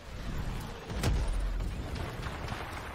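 A fiery explosion roars with a deep rumble.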